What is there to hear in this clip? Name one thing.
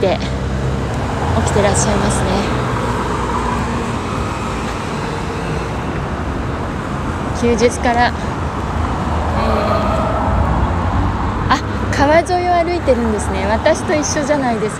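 Traffic rumbles steadily outdoors.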